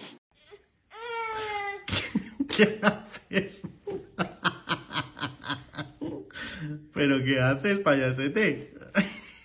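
A baby laughs heartily, again and again, close by.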